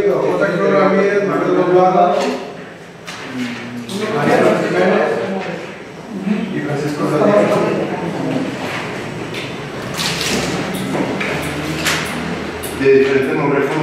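A middle-aged man speaks to a group in a room, a little way off.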